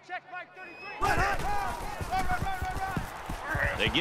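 Football players collide with heavy thuds.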